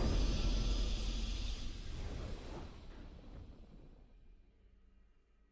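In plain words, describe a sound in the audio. Triumphant game music plays loudly and fades away.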